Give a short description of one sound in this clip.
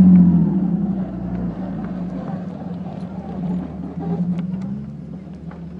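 Loose parts rattle and knock inside the vehicle.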